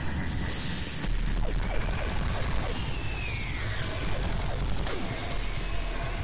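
An energy weapon fires rapid zapping shots.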